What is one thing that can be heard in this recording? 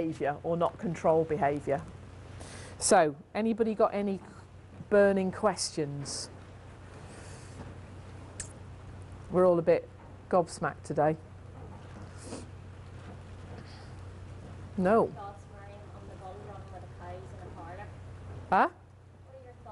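A middle-aged woman speaks calmly and close by, in short bursts with pauses.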